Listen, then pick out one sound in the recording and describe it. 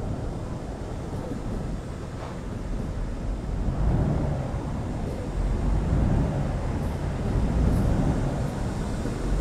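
A truck engine rumbles steadily, growing louder as it speeds up.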